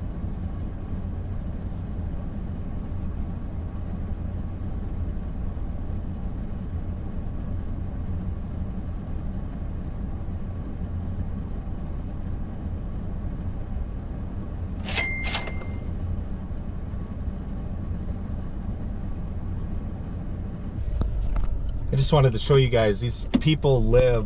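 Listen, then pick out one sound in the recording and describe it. A car engine idles with a low, steady hum, heard from inside the car.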